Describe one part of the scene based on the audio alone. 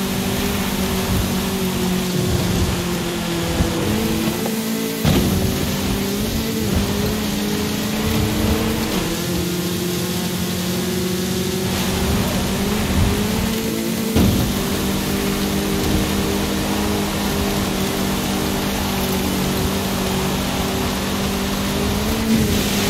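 A car engine roars steadily, shifting gears as it speeds up.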